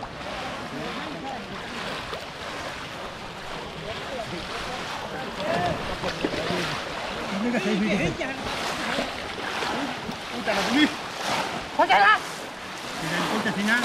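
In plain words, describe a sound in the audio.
Water splashes and sloshes as people wade.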